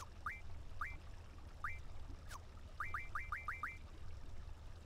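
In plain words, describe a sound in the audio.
Short rising menu beeps chirp as a cursor moves through a game menu.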